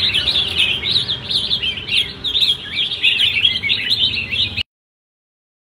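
Caged songbirds chirp and trill rapidly, close by, outdoors.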